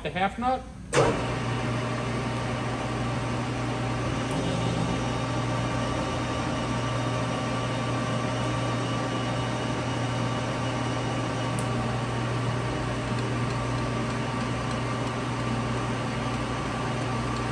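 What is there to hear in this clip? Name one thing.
A lathe motor starts and runs with a steady hum.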